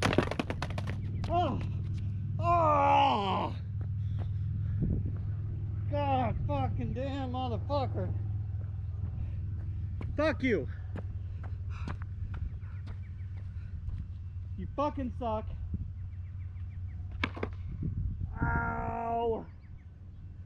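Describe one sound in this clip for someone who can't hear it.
Skateboard wheels rumble across rough concrete.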